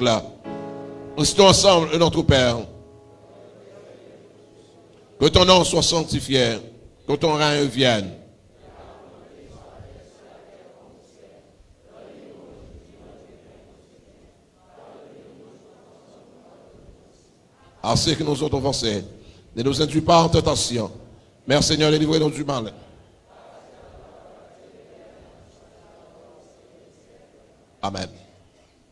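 A man speaks loudly through a microphone and loudspeakers in short, forceful bursts with long pauses.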